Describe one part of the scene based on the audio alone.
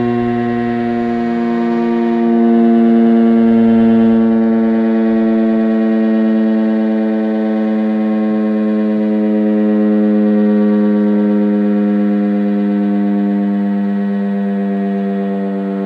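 An outdoor warning siren blares loudly with a steady, droning tone.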